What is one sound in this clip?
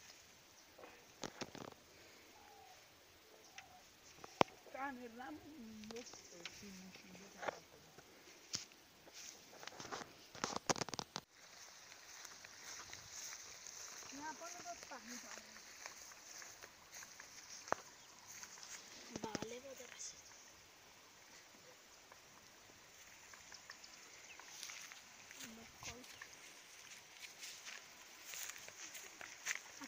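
Footsteps crunch on dry leaves and grass.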